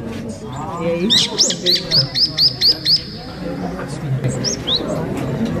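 A recorded bird call plays through a small loudspeaker in sharp, repeated chirps.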